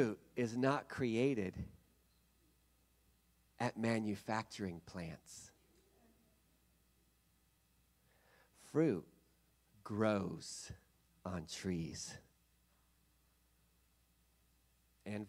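A man speaks through a microphone and loudspeakers, with pauses, in a large room.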